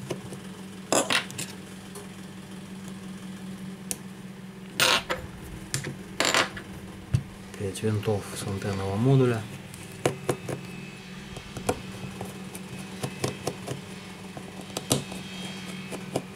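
Tweezers click and scrape against a phone's metal frame.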